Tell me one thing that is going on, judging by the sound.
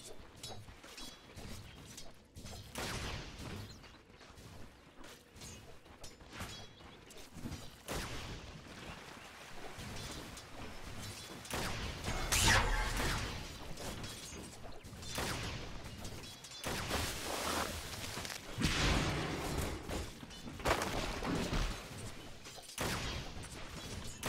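Fighting characters in a game clash with bursts of magic and blows.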